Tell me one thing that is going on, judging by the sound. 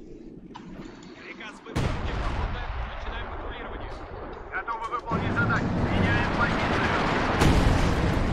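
Machine guns rattle in bursts.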